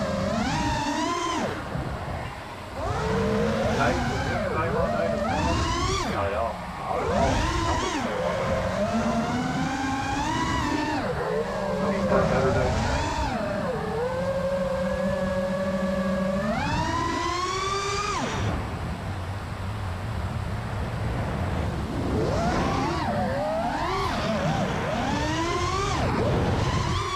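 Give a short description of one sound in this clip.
Small drone motors whine loudly, rising and falling in pitch as they speed up and slow down.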